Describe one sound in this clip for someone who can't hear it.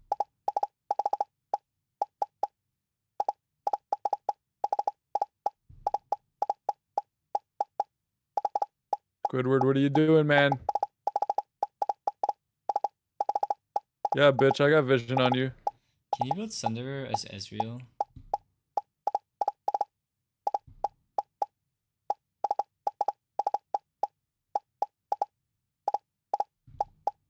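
A toy-like laser gun fires rapid, short, high blips over and over.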